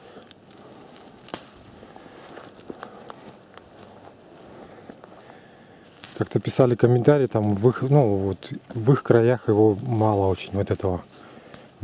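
A hand rustles dry lichen on a branch.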